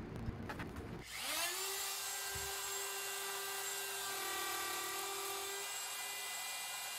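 A power router spins up and whines steadily at high speed.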